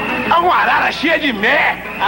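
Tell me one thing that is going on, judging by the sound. A man sings joyfully.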